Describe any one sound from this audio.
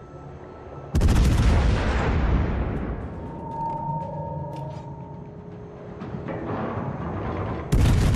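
Heavy naval guns fire with a deep, thundering boom.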